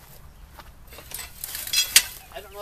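A long pole knocks and rattles against a pile of scrap.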